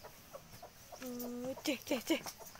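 A cow moos briefly nearby.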